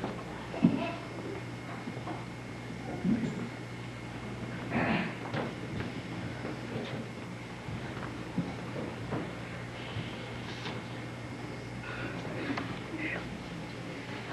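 A young girl speaks into a toy microphone, close by.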